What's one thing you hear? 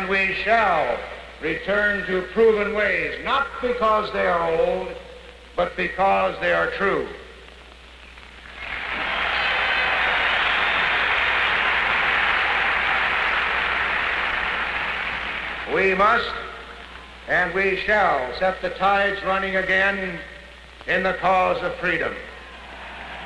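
An older man speaks firmly into a microphone in a large echoing hall.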